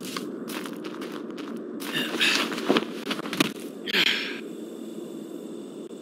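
Footsteps crunch over gravel and grass.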